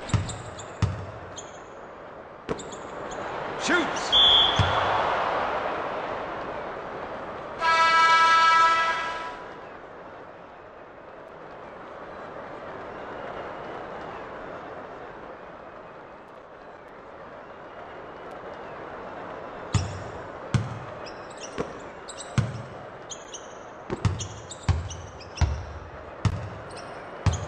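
A basketball bounces on a hardwood court with sharp thumps.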